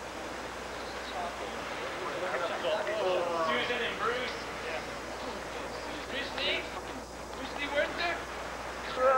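Young men talk and call out from a short distance.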